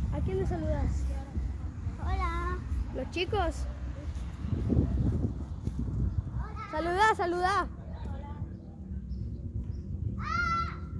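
Footsteps run over dry grass.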